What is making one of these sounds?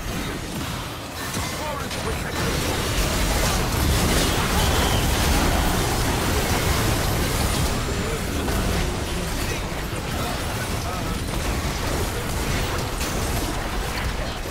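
Game spell effects crackle and boom in a fight.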